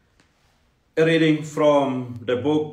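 A second man speaks calmly close to a microphone.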